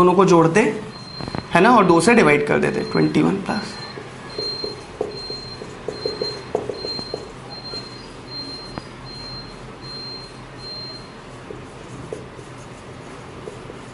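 A marker squeaks and taps on a whiteboard.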